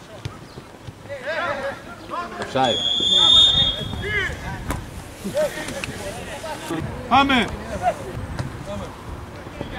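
Football players shout to each other outdoors on an open pitch.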